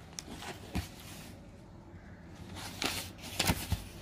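A paper page rustles as it is turned.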